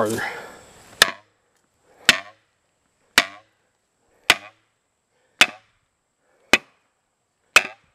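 A hatchet strikes a tree trunk with sharp, evenly spaced knocks.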